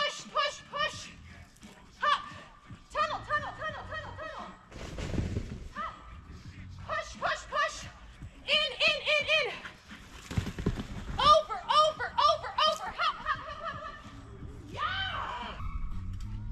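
A woman calls out to a dog in a high, animated voice.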